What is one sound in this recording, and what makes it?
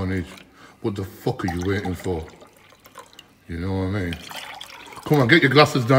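Liquid pours and splashes into glasses.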